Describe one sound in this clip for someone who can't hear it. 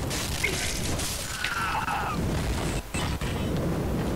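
Metal weapons clang in a fight.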